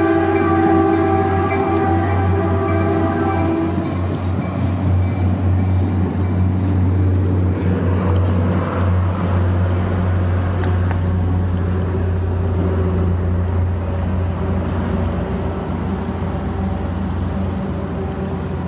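A person rolls and thumps over a concrete sidewalk.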